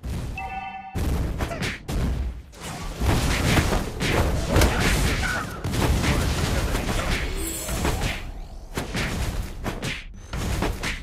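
Video game spells blast and crackle during a fight.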